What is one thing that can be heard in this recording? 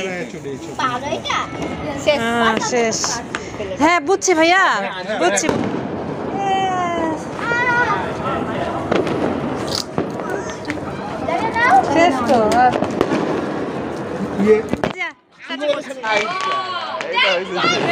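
A sparkler fizzes and crackles close by.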